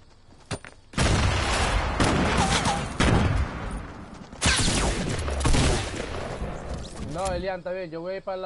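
Loud video game sound effects crash and roar.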